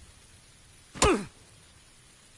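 A game character lands with a thud on the ground after a parachute drop.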